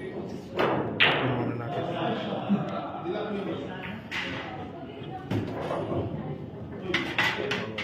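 Billiard balls knock together and roll across the table.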